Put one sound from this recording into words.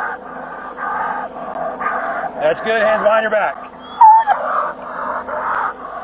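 A dog barks and whines excitedly close by.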